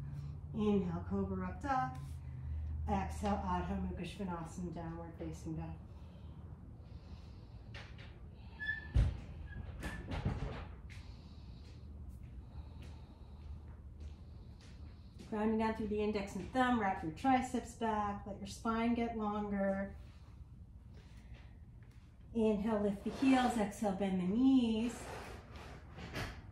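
A woman speaks calmly, giving instructions.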